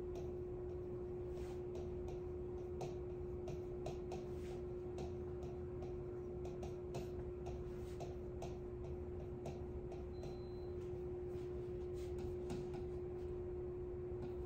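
A pen taps and squeaks against a hard board.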